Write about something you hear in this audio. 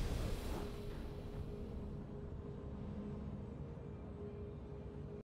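A triumphant game fanfare rings out and slowly fades.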